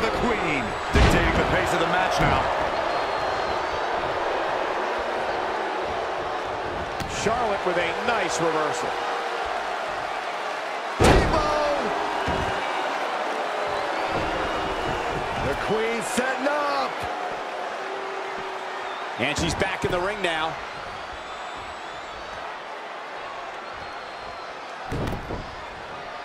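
Bodies slam hard onto a wrestling mat with loud thuds.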